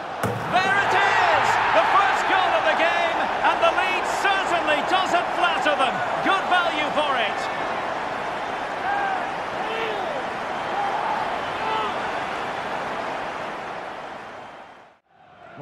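A large crowd cheers and roars loudly, then slowly quietens.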